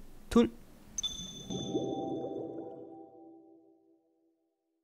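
A short chime rings out and fades into silence.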